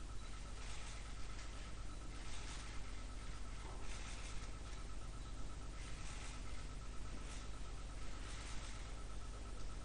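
A man murmurs softly close by.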